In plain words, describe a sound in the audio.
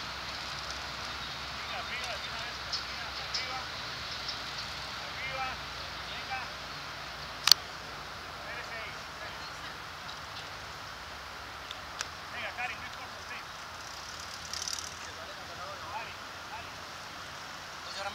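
Bicycles roll past on a smooth track.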